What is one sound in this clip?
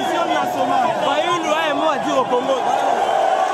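A man speaks forcefully close by.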